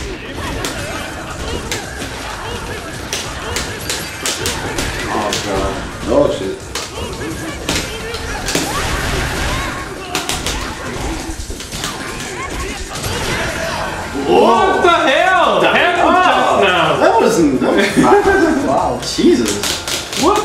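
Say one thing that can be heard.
Punches and kicks land with sharp electronic impacts in a fighting game.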